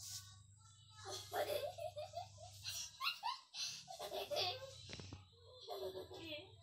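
A young girl talks playfully close by.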